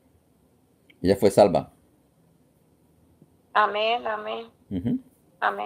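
A middle-aged woman speaks calmly and close by, heard through a phone or online call.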